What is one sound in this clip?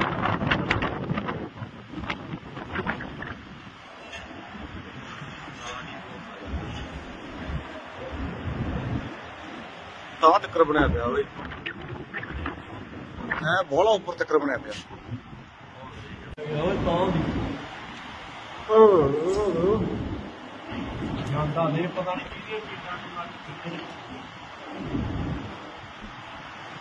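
Strong wind gusts and roars outdoors.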